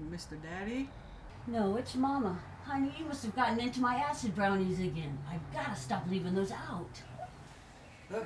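A young woman speaks in distress, close by.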